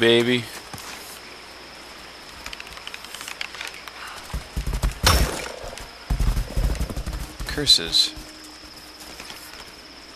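A bowstring creaks as it is drawn taut.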